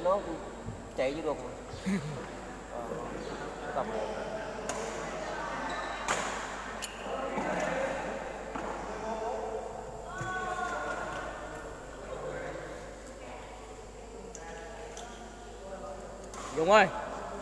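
A shuttlecock is struck with a racket.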